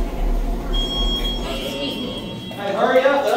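An elevator chime rings.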